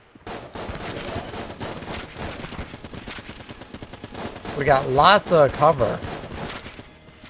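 Video game gunfire rattles rapidly.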